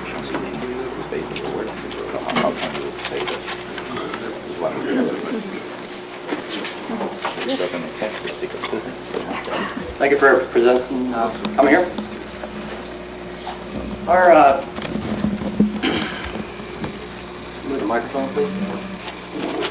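A young man speaks calmly through a microphone in an echoing hall.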